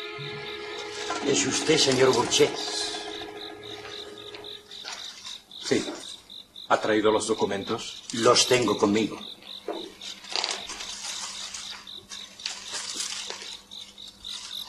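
A man speaks close by, with animation.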